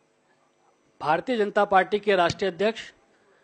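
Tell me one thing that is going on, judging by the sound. A man speaks loudly into a microphone over loudspeakers.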